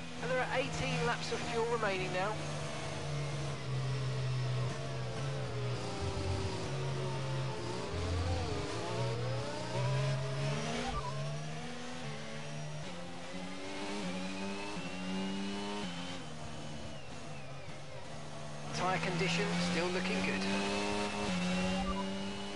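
A racing car engine whines loudly, its pitch rising and dropping sharply as it shifts gears.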